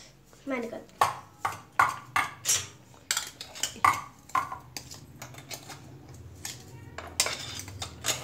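Metal clinks as a steel grinder jar is handled and tapped.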